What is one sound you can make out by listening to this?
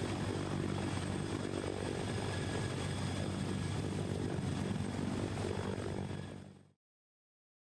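A helicopter's rotor thumps loudly close by.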